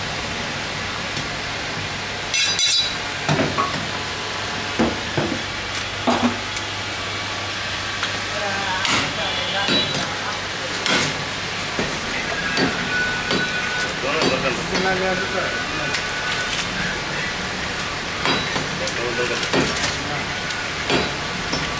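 Wet chunks of meat squelch and slap as hands rummage through a pile.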